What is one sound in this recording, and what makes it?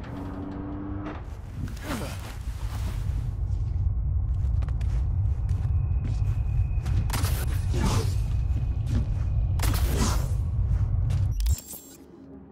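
A low, steady rumble fills an echoing tunnel.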